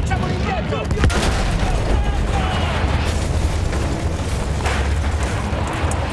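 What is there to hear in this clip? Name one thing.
An explosion booms with a deep rumble nearby.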